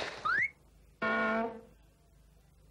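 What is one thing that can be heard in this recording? A nose honks loudly like a bicycle horn when squeezed.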